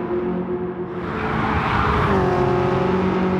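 Tyres hiss loudly as a car passes close by.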